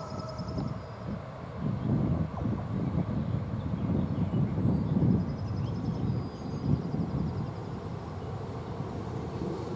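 A train rumbles in the distance as it approaches.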